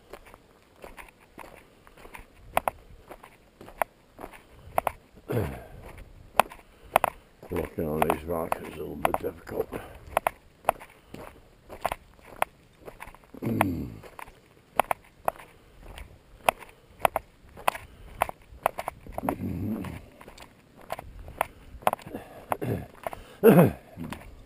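Footsteps crunch steadily on a gravel road.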